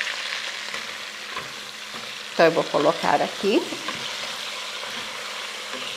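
A spatula scrapes and stirs inside a metal pot.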